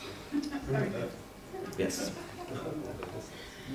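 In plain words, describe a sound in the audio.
A middle-aged man laughs softly.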